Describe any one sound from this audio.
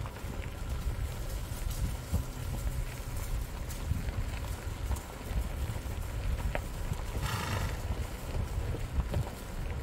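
A horse walks with muffled hoofbeats on soft ground.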